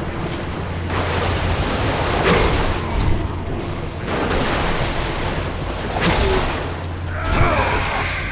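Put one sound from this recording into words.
Swords clash and spells burst in a noisy fantasy battle.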